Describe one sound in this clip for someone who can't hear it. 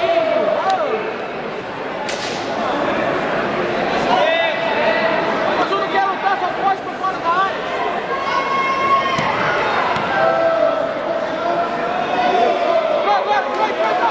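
A crowd of spectators talks and calls out in a large echoing hall.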